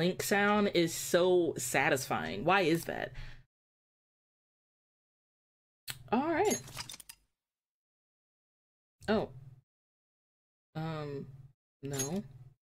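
A young woman speaks with animation into a close microphone, in short bursts with pauses.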